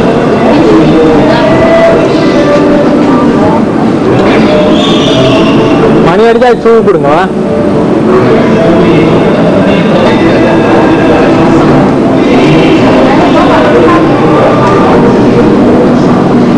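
Several women and men talk over one another nearby.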